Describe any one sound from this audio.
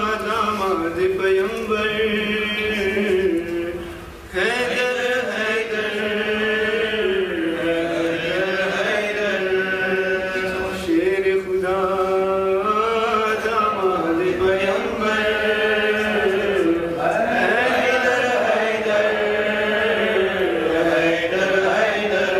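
A young man recites in a melodic chant through a microphone.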